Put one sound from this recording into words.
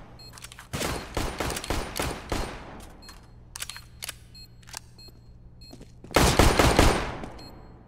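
Rifle gunshots fire in rapid bursts.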